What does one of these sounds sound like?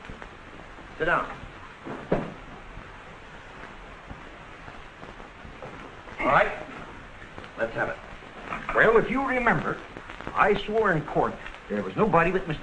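Men talk with each other, in short bursts.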